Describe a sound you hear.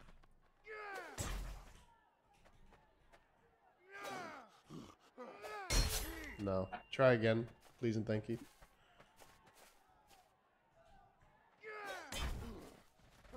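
A sword swishes through the air.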